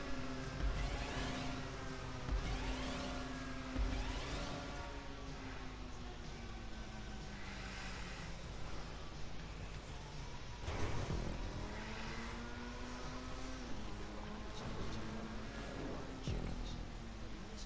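A racing car engine roars and revs up and down.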